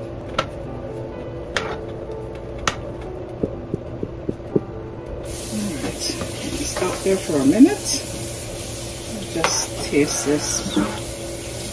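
A spoon scrapes and knocks against a metal pot.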